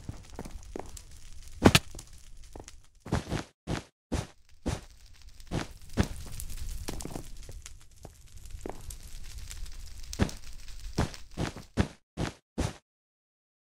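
Game blocks are placed with short, quick clicks.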